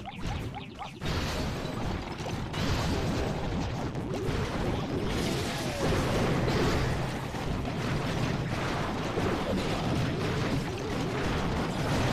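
Cartoon battle noises clash and thud steadily.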